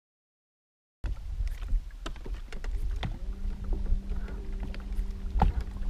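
Water laps against a boat's hull.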